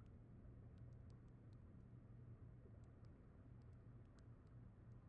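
Footsteps clink faintly on metal ladder rungs.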